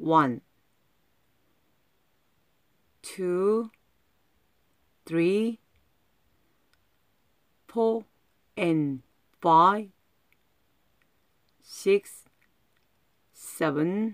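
A woman calls out short words loudly and clearly, with pauses between them.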